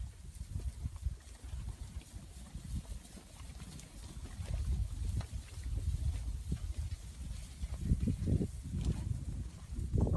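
Cattle shuffle and trample through grass.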